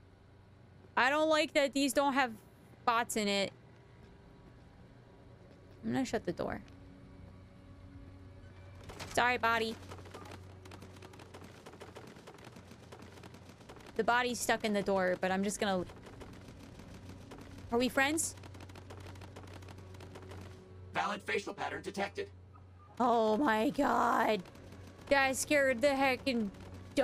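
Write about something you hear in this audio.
A young woman talks with animation into a close microphone, in short bursts.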